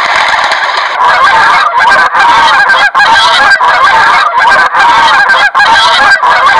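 A goose honks repeatedly.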